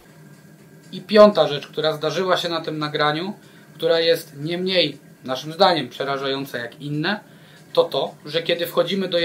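A man speaks calmly and with animation close to a microphone.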